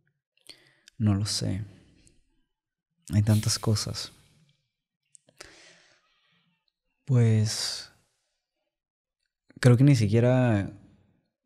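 A young man speaks calmly in short phrases, close to a microphone.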